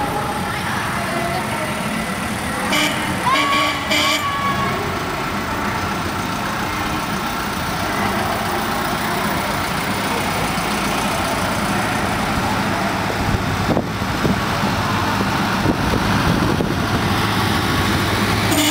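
Vans drive past close by, their engines droning.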